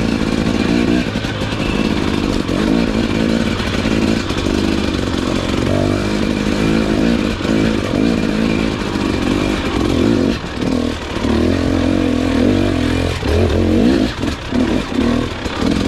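A dirt bike engine revs and roars up close, rising and falling in pitch.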